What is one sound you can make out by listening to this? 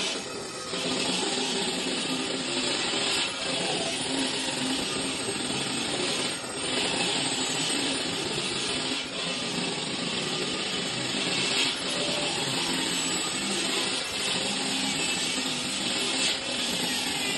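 A handheld power grinder whines steadily as it grinds stone.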